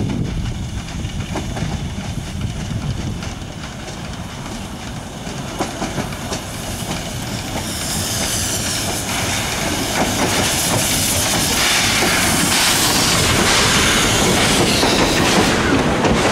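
A steam locomotive chuffs as it approaches and passes close by.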